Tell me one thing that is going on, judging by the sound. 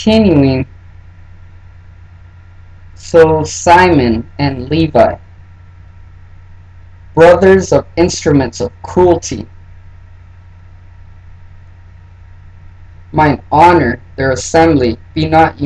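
A man speaks calmly and close, in short phrases with pauses.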